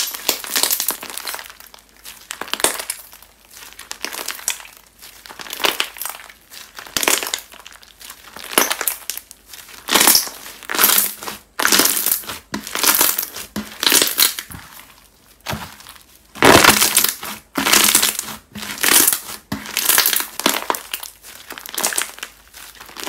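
Sticky slime squishes and crackles close up.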